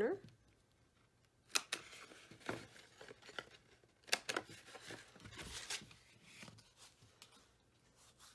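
Stiff paper rustles and taps as it is folded and handled.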